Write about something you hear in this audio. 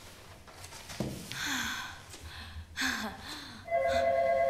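A young woman laughs softly close by.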